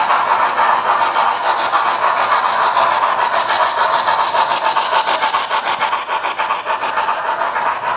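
A second model train rumbles past close by.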